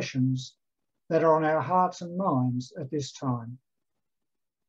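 An older man speaks calmly close to a microphone.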